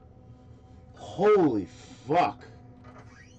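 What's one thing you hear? A young man cries out loudly in a high, wavering voice.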